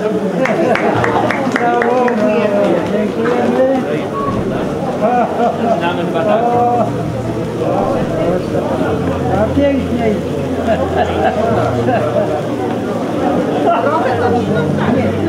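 A crowd of men and women chatter and talk at once.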